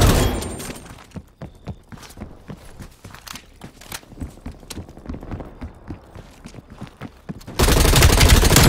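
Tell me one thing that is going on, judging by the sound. Footsteps run over hard ground.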